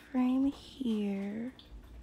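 A small metal tool taps lightly against a false nail.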